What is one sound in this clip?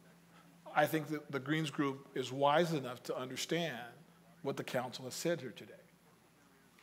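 A middle-aged man speaks firmly into a microphone.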